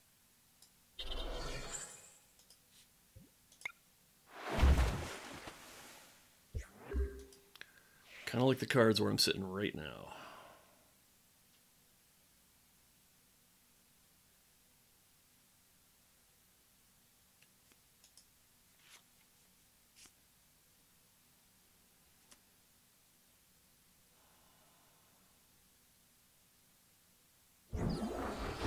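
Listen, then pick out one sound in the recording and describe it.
A man talks casually and close to a microphone, in short bursts with long pauses.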